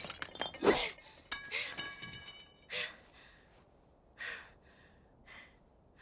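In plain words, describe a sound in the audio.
A young woman pants and gasps for breath, close by.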